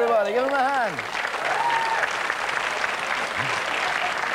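A studio audience applauds and cheers.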